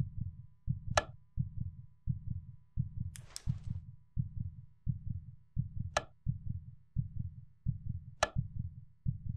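A lamp switch clicks sharply a few times.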